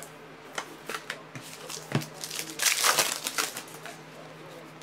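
Foil card wrappers rustle and crinkle in hands.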